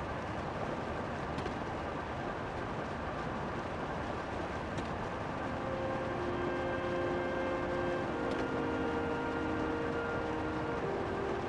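Air rushes loudly and steadily past during a fast upward flight.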